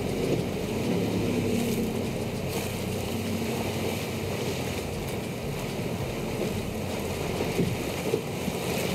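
Waves splash and crash against a boat's hull.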